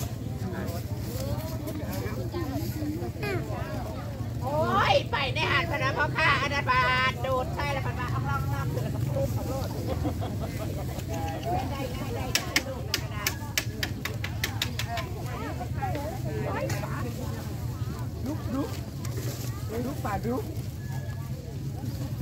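A crowd of men and women chatter and call out nearby, outdoors.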